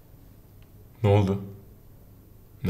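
A young man asks a short question quietly, close by.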